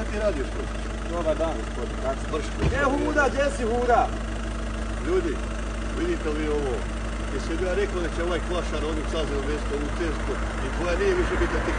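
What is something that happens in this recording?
A second man answers.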